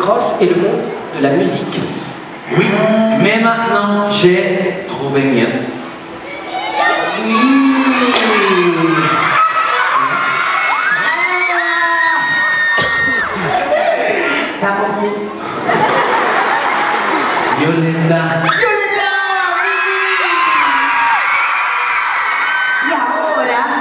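Young men talk with animation through headset microphones over loudspeakers in a large hall.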